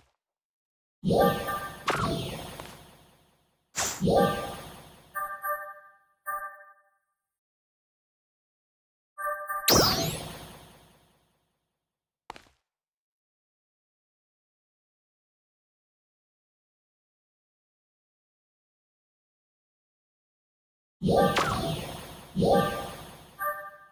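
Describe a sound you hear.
Short bright chimes ring out in quick bursts.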